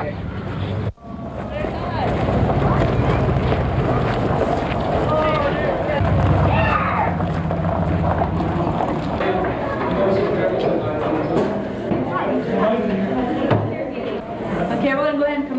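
Many people chatter in a large room.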